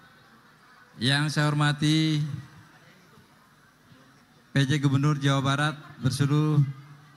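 A middle-aged man speaks loudly and forcefully into a microphone, in short bursts.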